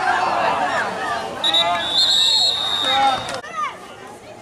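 Young players shout and call out outdoors.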